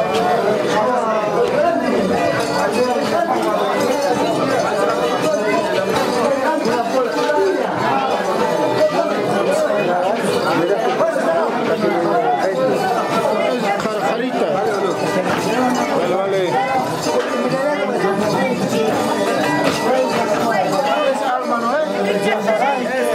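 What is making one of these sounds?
A crowd of men and women sing loudly together close by.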